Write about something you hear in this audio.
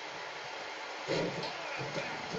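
A heavy body slam thuds through a television speaker.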